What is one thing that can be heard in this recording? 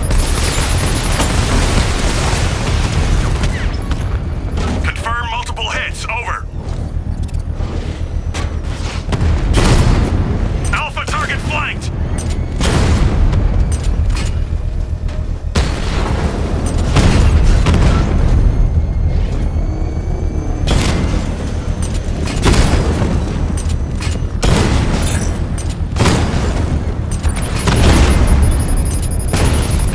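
Cannon fire booms and explosions burst repeatedly.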